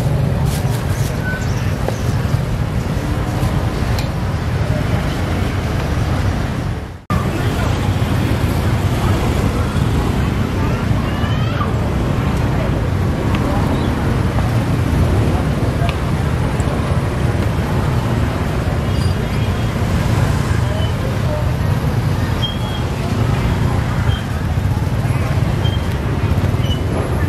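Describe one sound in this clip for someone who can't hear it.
A crowd murmurs in a busy outdoor street.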